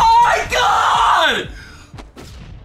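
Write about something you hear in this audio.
A young man shouts excitedly through a headset microphone.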